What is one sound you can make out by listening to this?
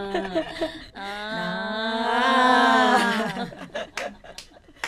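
Several women sing together into microphones.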